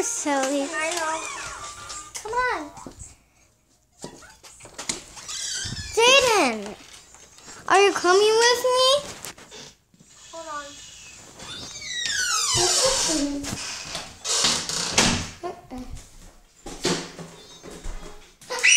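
A young child squeals and babbles very close by.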